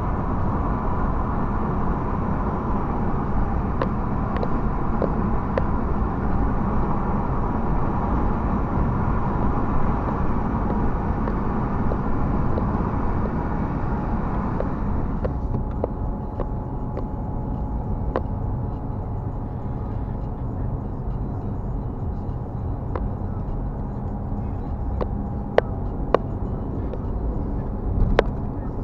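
Tyres roll on asphalt with a steady rumble.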